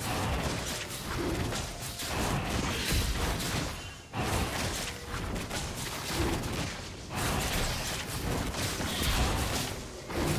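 Game combat effects crackle and clash rapidly.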